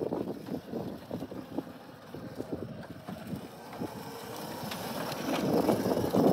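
A small go-kart engine whirs and buzzes, growing louder as it approaches.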